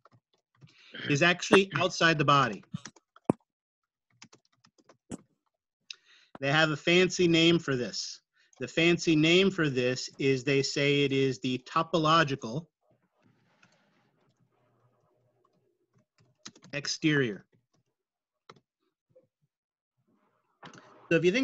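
A man speaks calmly over an online call, pausing between phrases.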